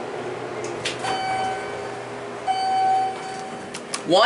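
An elevator chime beeps twice.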